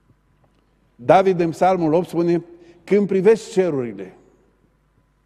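A middle-aged man speaks calmly and slowly into a microphone, in a room with a slight echo.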